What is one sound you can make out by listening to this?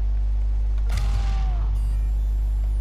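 An explosion booms with a crackling rumble.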